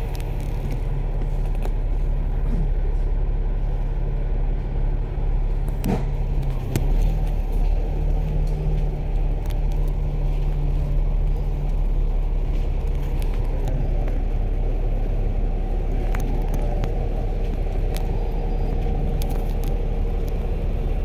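Road noise from a moving vehicle hums throughout.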